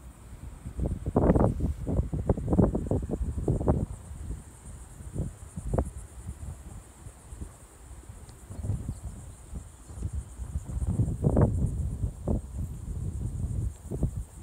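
Wind gusts across the microphone outdoors, rumbling in bursts.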